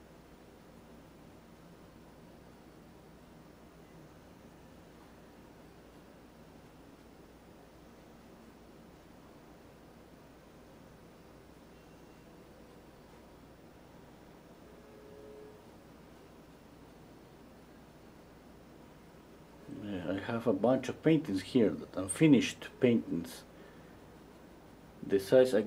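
A paintbrush softly brushes across a canvas.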